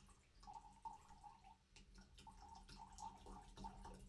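Juice pours from a carton into a glass.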